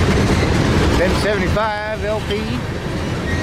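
Metal wheels squeal against the rails.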